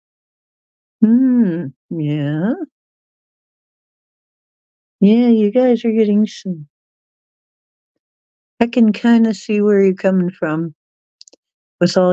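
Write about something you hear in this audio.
An older woman speaks calmly into a microphone, in short phrases with pauses.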